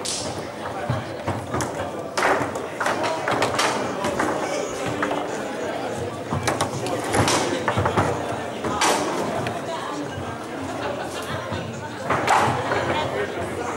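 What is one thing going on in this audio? Foosball rods rattle and thud as players spin and slide them.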